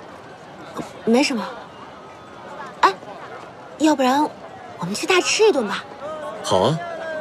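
A young woman speaks cheerfully up close.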